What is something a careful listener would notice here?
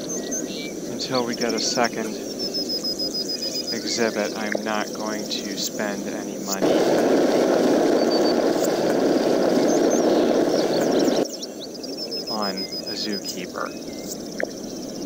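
A young man talks casually into a headset microphone, close up.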